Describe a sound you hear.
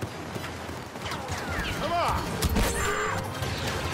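Blaster guns fire in quick bursts.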